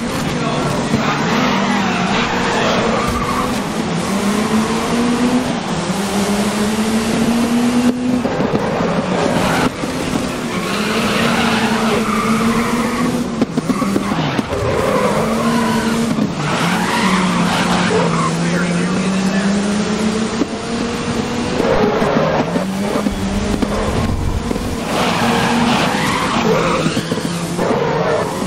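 A racing car engine roars loudly, rising and falling in pitch as gears shift.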